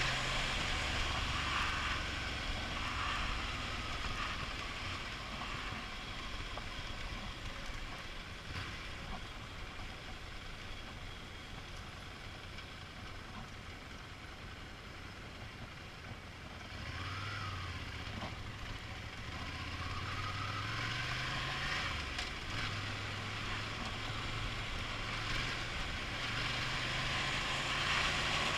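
Wind rushes loudly past a helmet.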